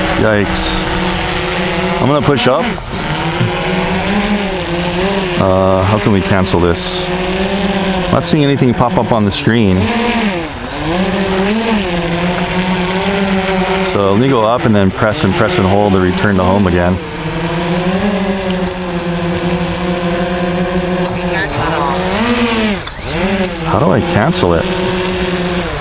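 A small drone's motors buzz steadily, their pitch rising and falling as it flies.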